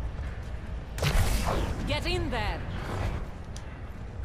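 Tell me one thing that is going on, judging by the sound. A sci-fi energy weapon fires with a loud humming crackle.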